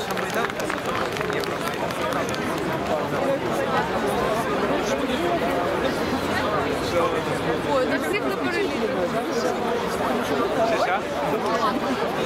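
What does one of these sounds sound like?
A large crowd of men and women murmurs and talks all around, outdoors.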